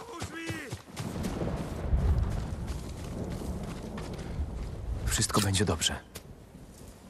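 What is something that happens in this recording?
Strong wind gusts across open grass.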